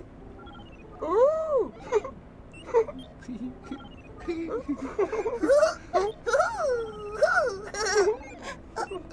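Childlike high-pitched voices chatter and sing in a playful, rising and falling way.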